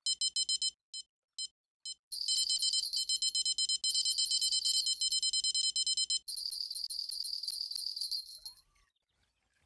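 An electronic bite alarm beeps rapidly.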